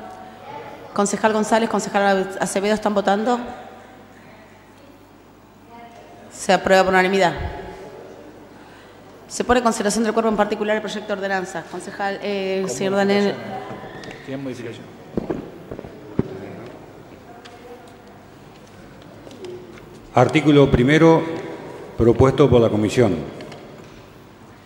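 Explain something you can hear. A middle-aged woman speaks calmly into a microphone, in short bursts with pauses.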